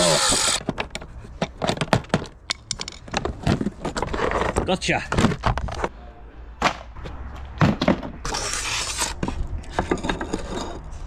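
A plastic panel knocks and scrapes as hands handle it.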